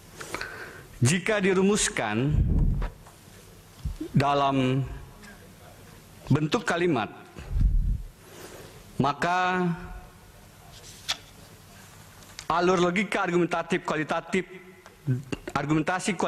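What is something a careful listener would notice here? A man speaks firmly into a microphone in short bursts with pauses.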